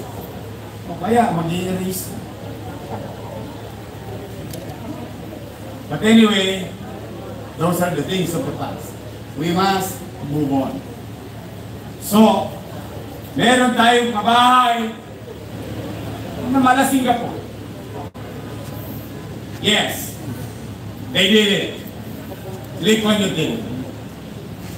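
A man speaks through a microphone and loudspeakers outdoors, in short phrases with pauses.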